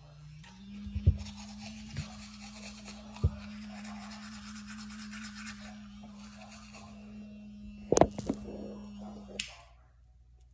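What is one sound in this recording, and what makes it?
An electric toothbrush scrubs against teeth.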